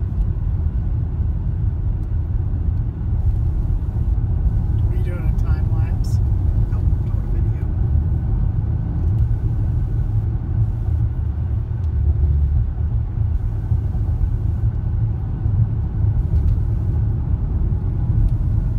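A car engine hums steadily with road rumble heard from inside the car.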